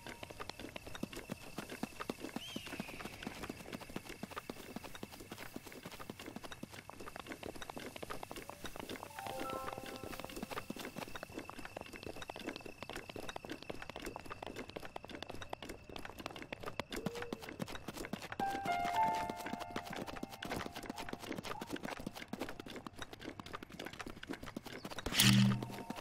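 Quick footsteps crunch over rocky ground.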